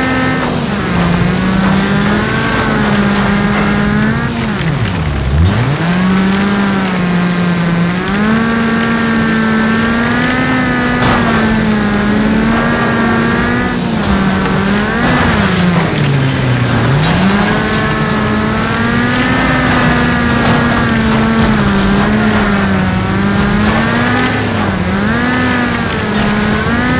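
A racing car engine roars and revs up and down.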